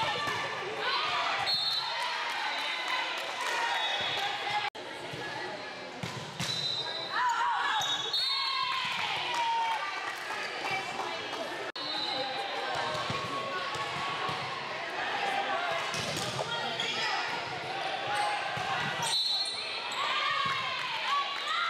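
A crowd of young women and girls chatters and calls out in a large echoing hall.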